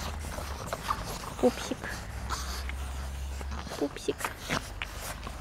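Small dogs yip and growl while playing.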